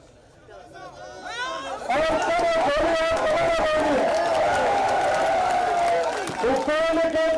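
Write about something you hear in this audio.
A large crowd of men shouts and chants slogans loudly outdoors.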